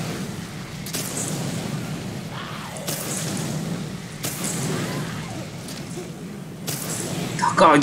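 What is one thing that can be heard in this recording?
Gunshots ring out.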